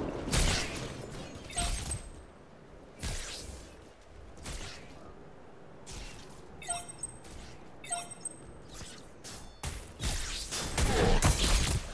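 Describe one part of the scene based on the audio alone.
Magic blasts and weapon strikes burst in short loud bursts.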